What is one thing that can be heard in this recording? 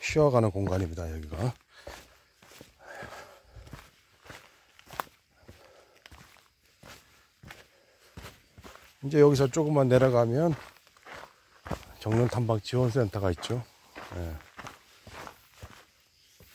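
Footsteps crunch on a rocky dirt trail.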